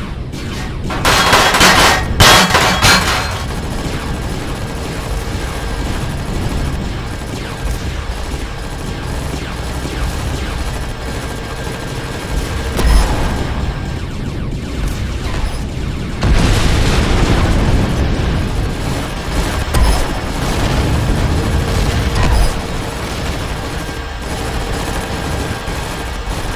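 A drill grinds steadily into rock, with bursts of louder crunching.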